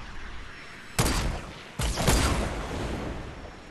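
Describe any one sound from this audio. Loud rifle shots crack, each followed by a rolling echo.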